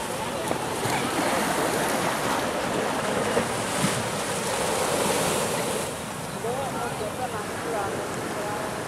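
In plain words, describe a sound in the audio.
Small waves wash up onto a beach.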